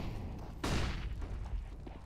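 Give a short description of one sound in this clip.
A rifle fires a loud shot.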